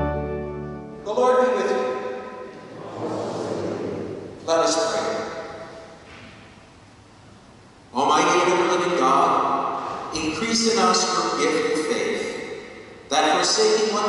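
A woman sings through a microphone in a large echoing hall.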